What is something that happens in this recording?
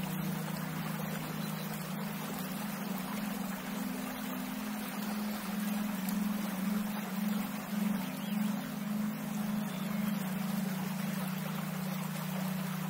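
A shallow stream trickles and burbles steadily over stones outdoors.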